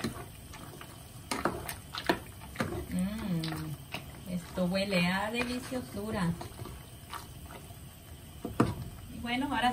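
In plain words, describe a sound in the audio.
A wooden spoon scrapes and knocks against a pan while stirring food.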